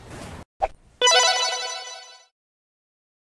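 An arcade game plays a short electronic jingle.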